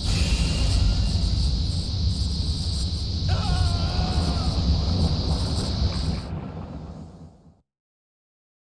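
A loud magical roar and rumble surges and then fades away.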